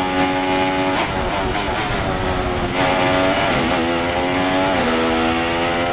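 A racing car engine winds down as the car brakes for corners, then revs up again.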